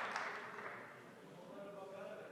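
A man speaks through a microphone and loudspeakers.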